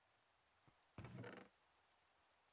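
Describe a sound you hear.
A wooden chest creaks open.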